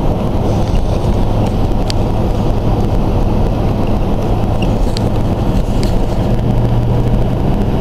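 A car drives fast along a highway with a steady low rumble of road and engine noise.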